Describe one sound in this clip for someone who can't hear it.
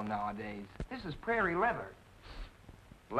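A young man speaks in reply, close by.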